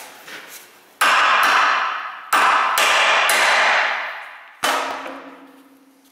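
A hammer strikes metal with loud ringing clangs.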